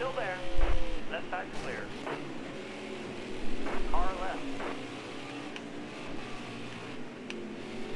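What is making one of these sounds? Race car engines drone steadily.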